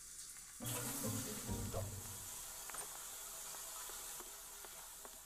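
Water sprays steadily from a shower.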